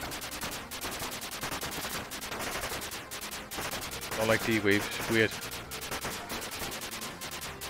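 Electronic explosions from a retro video game burst now and then.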